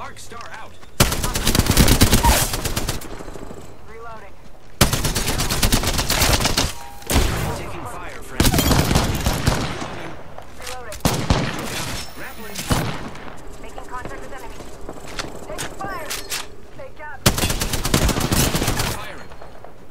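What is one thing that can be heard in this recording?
Automatic gunfire rattles in loud bursts.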